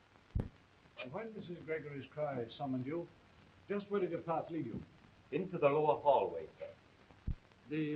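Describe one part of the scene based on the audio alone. A second man answers in a raised voice.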